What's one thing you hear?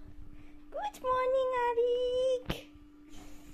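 A young boy laughs close by.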